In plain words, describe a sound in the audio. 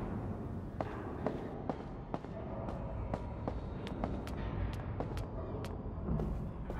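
Footsteps climb metal stairs.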